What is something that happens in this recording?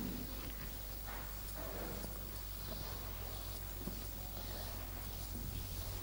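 A board eraser rubs across a chalkboard.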